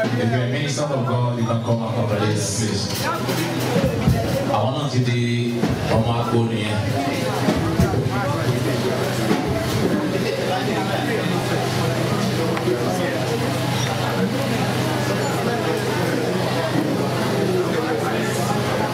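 A man sings loudly through a microphone over a loudspeaker.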